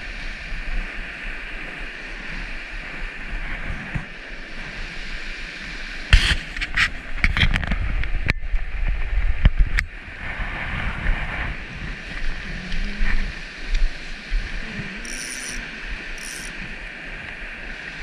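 A shallow river rushes and babbles over stones nearby.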